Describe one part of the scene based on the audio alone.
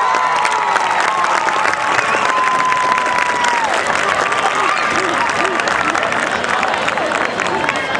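A crowd cheers and screams loudly outdoors.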